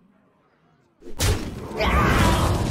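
A magical shimmering sound effect bursts out.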